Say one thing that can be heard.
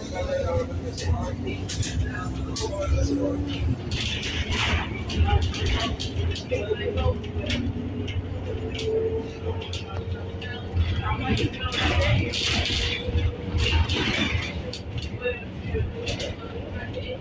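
A city bus engine rumbles low, heard from inside as the bus drives along.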